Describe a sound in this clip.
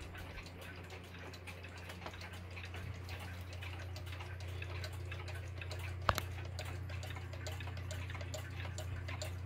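Cuckoo clocks tick.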